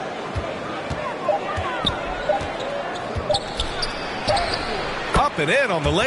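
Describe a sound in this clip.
A basketball bounces repeatedly on a hardwood floor.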